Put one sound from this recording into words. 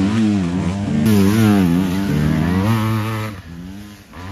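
A second dirt bike engine roars past close by.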